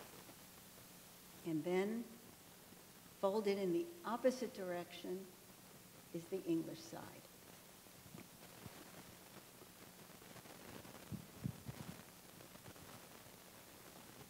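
Stiff paper pages rustle and crinkle as they are turned and unfolded.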